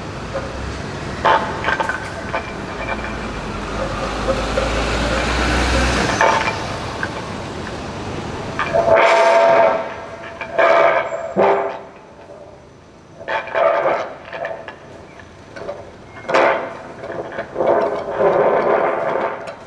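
A man bows a cello.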